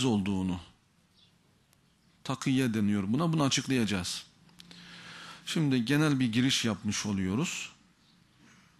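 A man speaks with animation into a microphone, in bursts with pauses.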